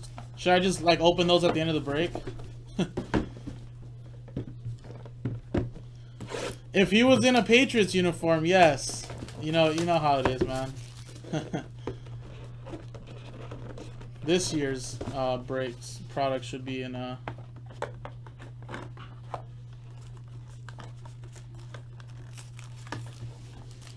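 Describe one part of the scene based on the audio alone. Cardboard boxes rustle and tap as hands handle them.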